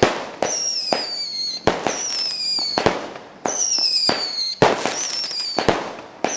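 Fireworks burst with sharp bangs.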